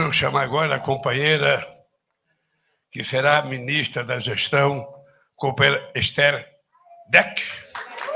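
An elderly man speaks slowly into a microphone.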